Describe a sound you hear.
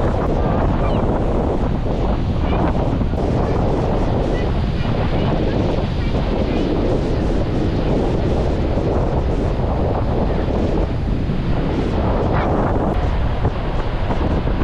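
Waves break and wash steadily onto a beach.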